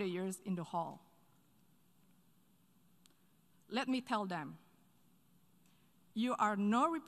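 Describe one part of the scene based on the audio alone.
A woman speaks calmly and formally into a microphone, in short phrases with pauses.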